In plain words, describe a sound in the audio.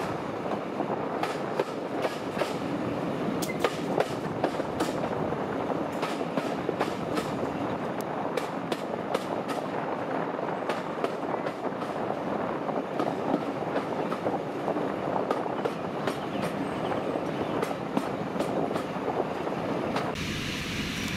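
A train engine roars steadily nearby.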